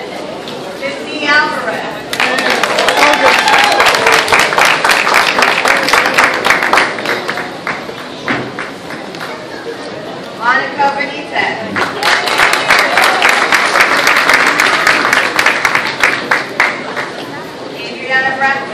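A woman announces through a microphone.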